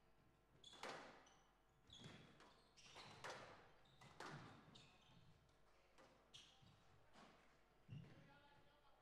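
A squash ball smacks sharply against rackets and walls, echoing in a large hall.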